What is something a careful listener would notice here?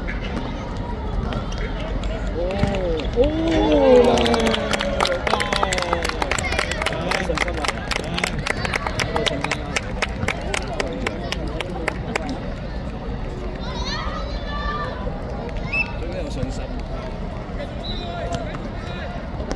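Children shout and cheer across an open court.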